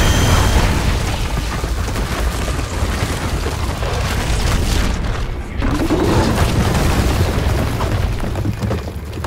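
A huge creature stomps heavily over rough ground.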